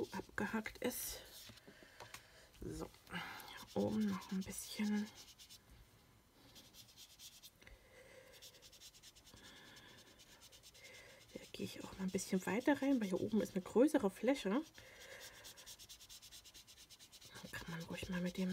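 Paper rustles and scrapes softly as hands rub and press it.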